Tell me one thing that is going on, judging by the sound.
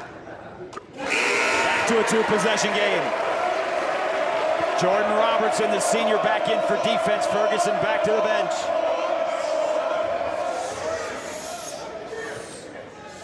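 A large crowd cheers and roars loudly in an echoing arena.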